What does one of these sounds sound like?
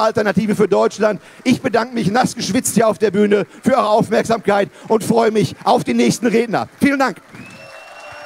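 A middle-aged man speaks forcefully into a microphone over loudspeakers.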